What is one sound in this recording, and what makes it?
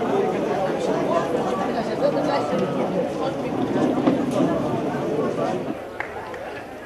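A crowd of people murmurs and talks nearby.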